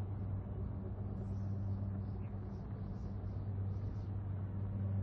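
A spacecraft's engines hum with a steady low drone.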